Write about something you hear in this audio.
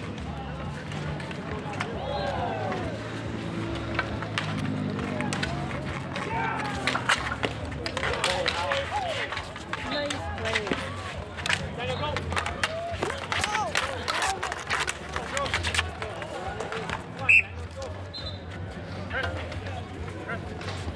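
Hockey sticks clack and scrape on asphalt.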